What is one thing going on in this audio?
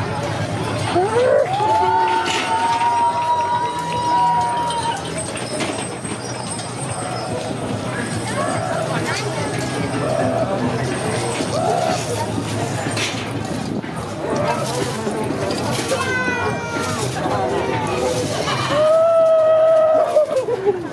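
Masked carnival figures shriek in high, drawn-out witch cries.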